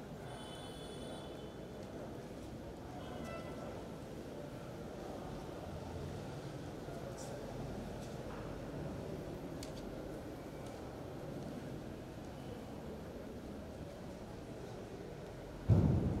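A crowd of people shuffles and murmurs softly in an echoing hall.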